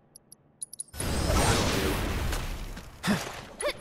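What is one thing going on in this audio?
A fiery explosion bursts in a video game battle.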